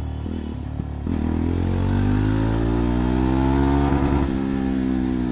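A motorcycle engine revs up, rising in pitch, then settles.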